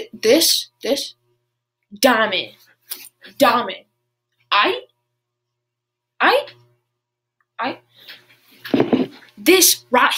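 A young boy talks close to a microphone with animation, in short bursts.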